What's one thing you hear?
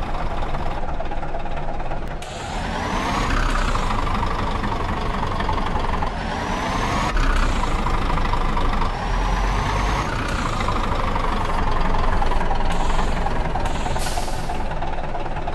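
A diesel semi-truck engine revs up through gear changes.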